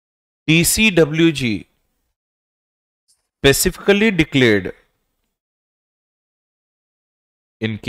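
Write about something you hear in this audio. A man lectures calmly into a close microphone, in short bursts with pauses.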